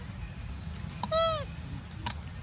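A baby monkey squeals briefly.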